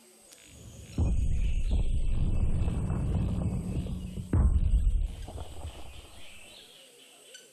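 A giant stone creature rumbles with deep, heavy booms.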